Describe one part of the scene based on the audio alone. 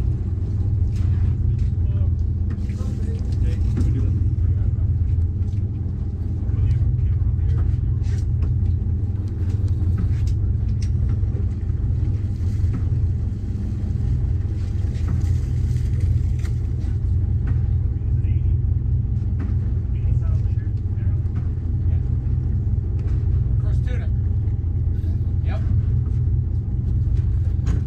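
A boat engine rumbles steadily.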